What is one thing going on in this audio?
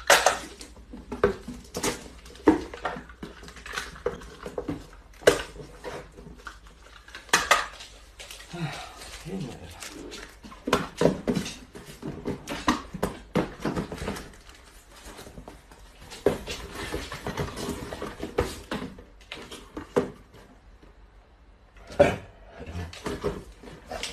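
Packing tape screeches as it is pulled off a roll.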